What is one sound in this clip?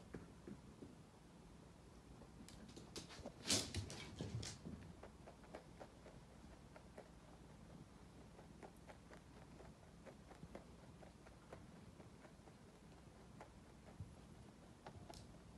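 Rabbits nibble and crunch food from a bowl up close.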